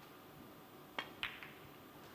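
A cue strikes a snooker ball with a sharp tap.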